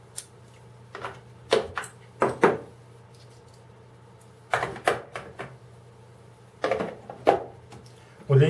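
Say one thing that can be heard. Metal tools clink and knock against a plastic case.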